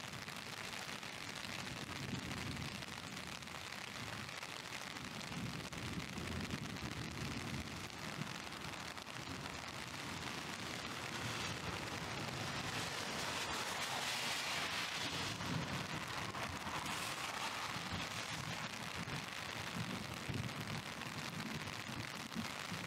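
Rain falls steadily, outdoors.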